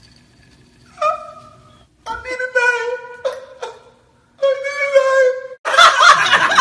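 A young man laughs loudly and shrilly close by.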